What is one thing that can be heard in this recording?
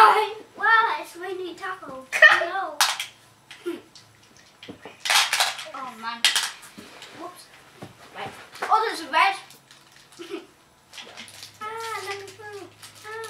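A young boy talks and exclaims close by.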